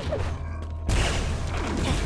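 An electric beam weapon crackles and hums as it fires.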